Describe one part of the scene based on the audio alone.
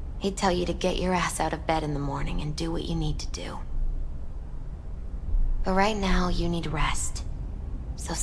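A young woman speaks softly and tenderly, close by.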